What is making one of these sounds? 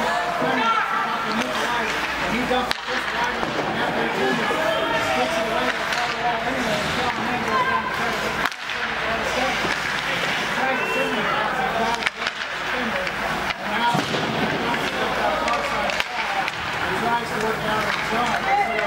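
A crowd of spectators chatters and calls out in an echoing rink.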